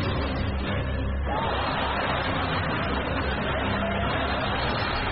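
A man sings.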